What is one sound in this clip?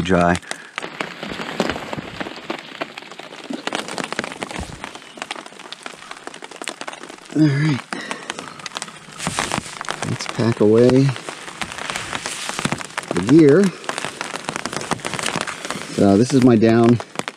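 Fabric rustles and crinkles close by.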